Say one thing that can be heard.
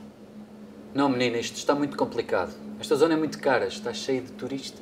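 A middle-aged man answers calmly nearby.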